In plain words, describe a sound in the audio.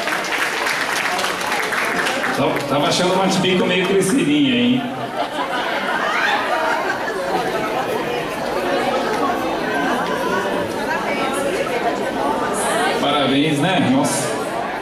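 A young woman speaks into a microphone, heard over loudspeakers in a large hall.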